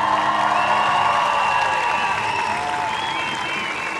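A large crowd cheers and claps outdoors.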